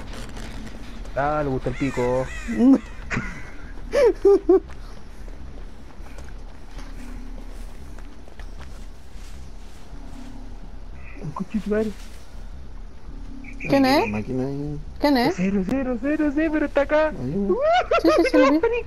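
Footsteps run over grass and leaves.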